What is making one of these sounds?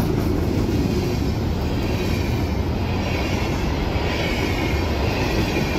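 A level-crossing bell rings.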